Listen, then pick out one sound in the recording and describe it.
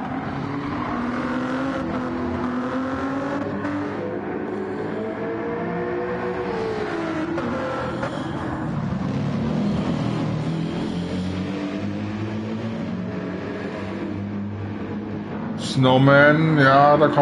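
Racing car engines roar and rev up and down.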